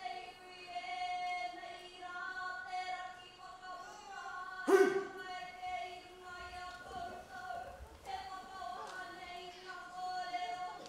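A group of young women sing together in chorus.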